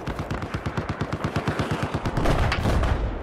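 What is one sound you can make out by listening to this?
Quick footsteps run over a hard surface.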